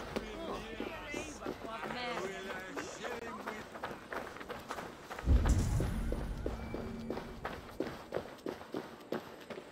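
Footsteps tread steadily on stone and gravel.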